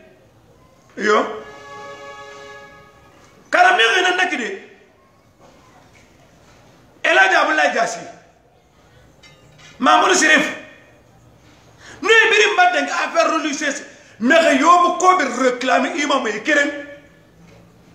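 An elderly man speaks loudly and with animation close by, in short bursts with pauses.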